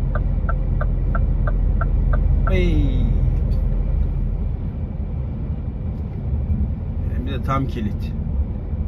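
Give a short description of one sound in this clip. A vehicle's engine and tyres rumble steadily on a road.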